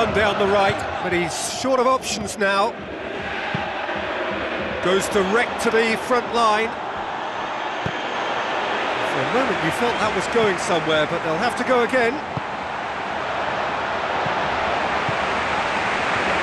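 A large crowd murmurs and cheers steadily.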